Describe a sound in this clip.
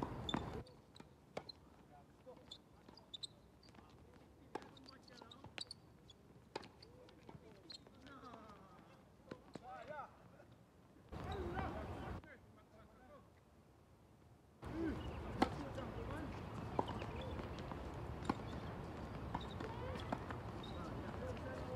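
Tennis balls are struck with rackets in a rally.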